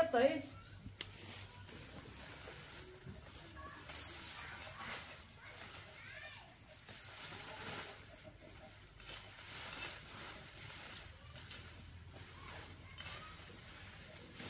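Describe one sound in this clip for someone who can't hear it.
A knife cuts through leafy stems, which rustle.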